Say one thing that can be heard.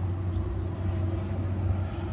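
A brush scrubs briskly over a leather shoe.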